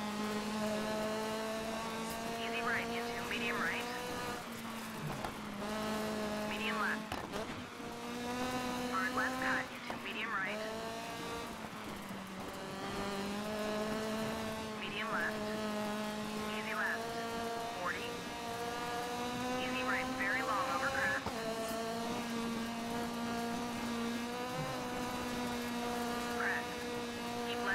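A rally car engine revs hard, rising and dropping with each gear change.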